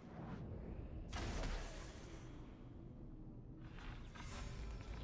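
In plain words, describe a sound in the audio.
A loud magical blast bursts and hums.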